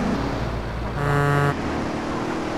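A truck horn blares briefly.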